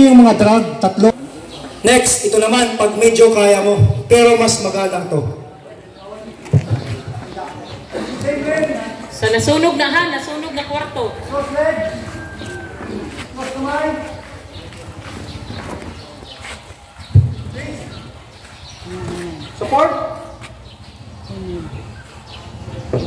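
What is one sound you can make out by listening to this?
A man speaks loudly and with animation through a loudspeaker.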